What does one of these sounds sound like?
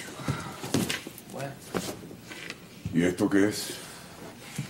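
An elderly man speaks in a surprised tone.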